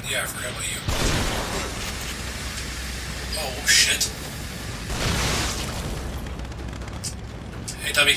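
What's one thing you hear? An explosion booms with a hiss of gas.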